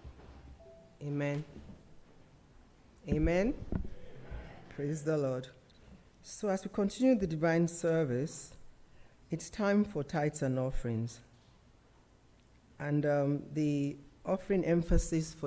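A woman speaks calmly into a microphone in a room with a slight echo.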